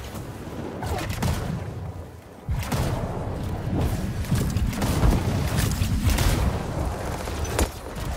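Thrusters roar and whoosh during a fast rush.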